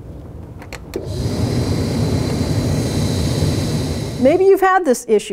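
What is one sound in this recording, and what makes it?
Air rushes steadily from a vent.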